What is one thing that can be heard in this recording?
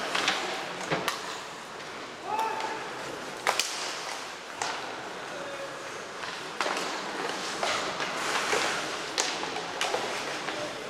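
Hockey sticks click sharply against a puck.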